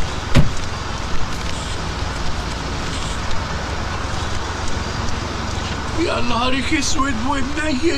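A sheet of paper rustles.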